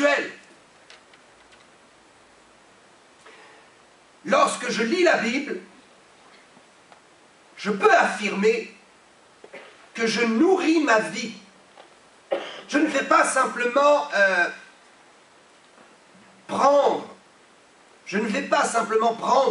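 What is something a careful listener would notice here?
A middle-aged man speaks with animation through a microphone, in bursts with pauses, in a slightly echoing room.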